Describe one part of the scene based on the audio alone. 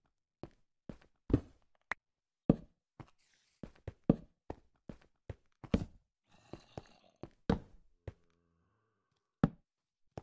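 Footsteps thud on stone, one after another.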